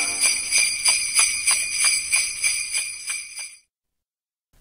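An accordion plays a lively tune.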